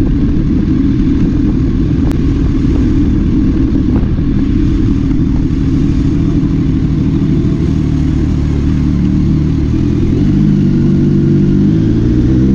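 A motorcycle engine idles with a low, steady rumble.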